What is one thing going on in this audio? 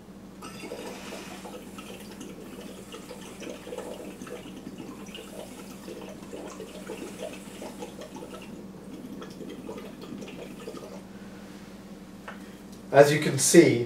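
A man blows through a straw, bubbling air into water.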